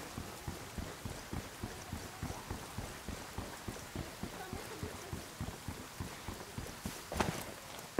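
Heavy footsteps crunch steadily on dirt and gravel.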